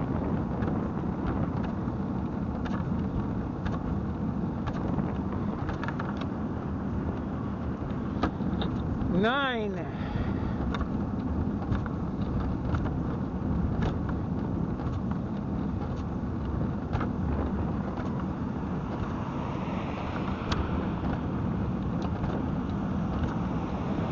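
Small tyres rumble and rattle over rough pavement.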